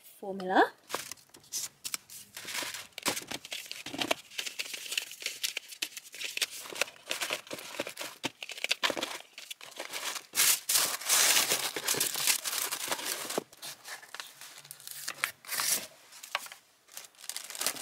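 Plastic wrapping and paper rustle and crinkle.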